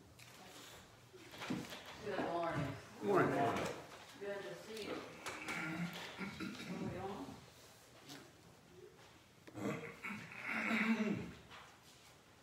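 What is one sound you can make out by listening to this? An elderly woman speaks calmly in a small echoing room.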